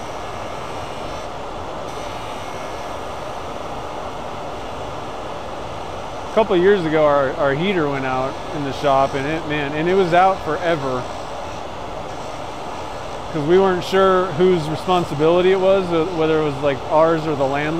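A hand tool scrapes against spinning metal.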